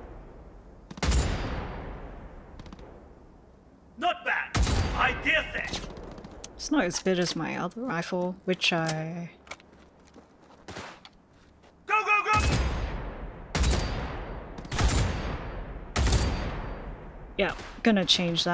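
A heavy gun fires loud booming shots that ring out and fade.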